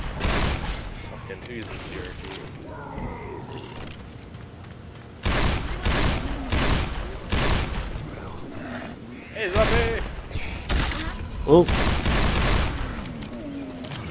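A pistol fires loud, sharp shots in quick bursts.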